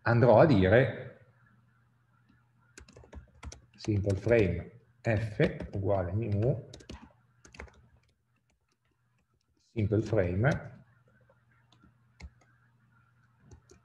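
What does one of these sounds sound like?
Keys clack on a computer keyboard in short bursts.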